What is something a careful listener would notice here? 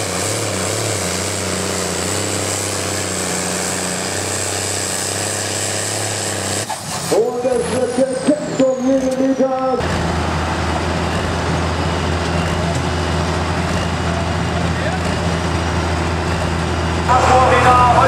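A tractor engine roars loudly under heavy strain.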